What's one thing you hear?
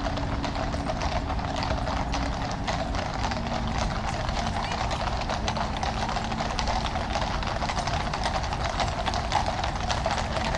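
Horses' hooves clop on the road, drawing nearer.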